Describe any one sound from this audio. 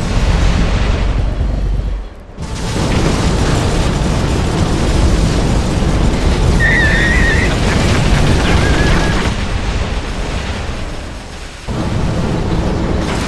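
Energy weapons blast and explosions boom in rapid bursts.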